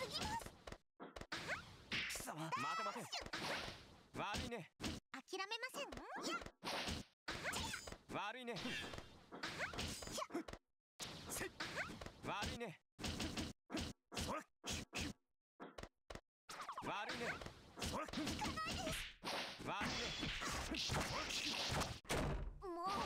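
Punches and kicks land with sharp smacks in quick bursts.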